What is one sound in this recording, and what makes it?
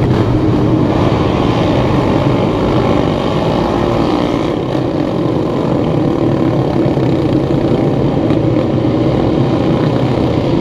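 Single-cylinder four-stroke racing motorcycles rev and pull away one after another.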